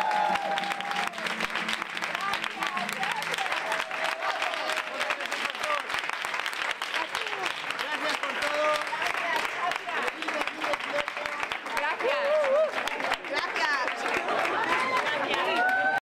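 A crowd of women claps along in rhythm.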